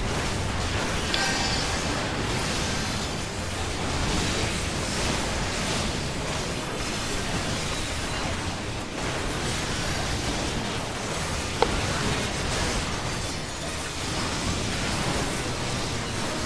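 Magic spells burst and whoosh in a busy battle.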